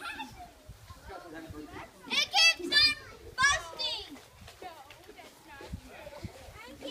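Children's voices chatter quietly in the background.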